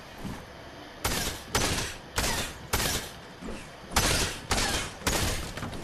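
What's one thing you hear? A pickaxe strikes wood in repeated harsh bursts.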